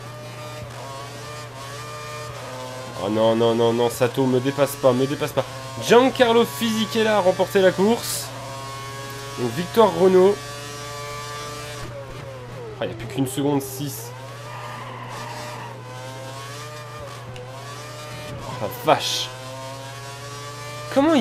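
A racing car engine screams, revving up and down through the gears.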